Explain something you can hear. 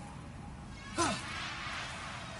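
A figure materializes with a sudden ghostly whoosh.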